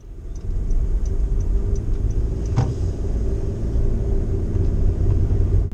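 Windscreen wipers swish across the glass.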